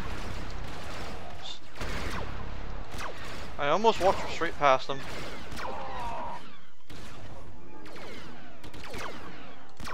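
Laser blasters fire in short bursts.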